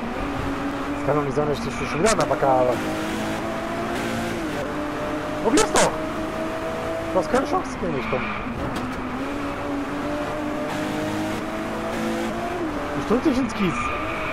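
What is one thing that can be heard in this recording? A sports car engine roars steadily at high revs, shifting gears now and then.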